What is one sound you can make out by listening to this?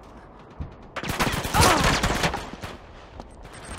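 A pistol fires several shots in quick succession.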